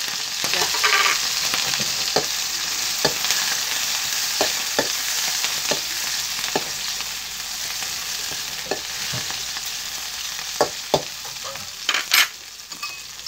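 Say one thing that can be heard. A spatula scrapes and clinks against a metal wok.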